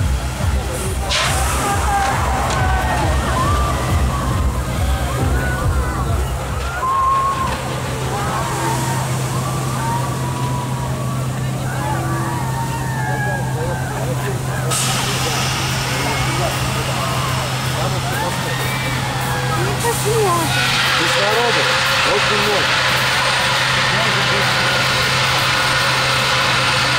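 Men and women chatter and call out excitedly outdoors.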